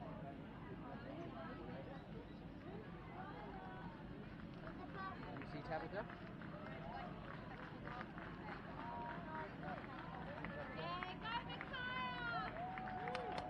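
A crowd of men and women chat at a distance outdoors.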